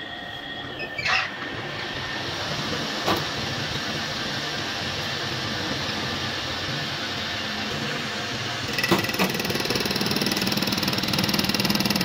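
A metal lathe starts up and spins a heavy casting in its chuck.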